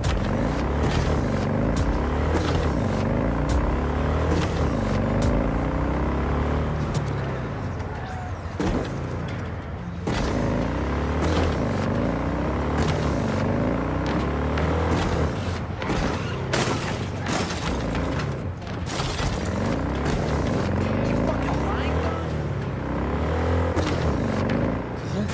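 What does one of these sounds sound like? A motorcycle engine roars and revs up and down repeatedly.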